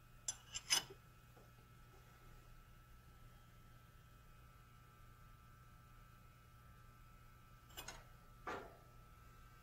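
A metal wrench clanks against a steel nut.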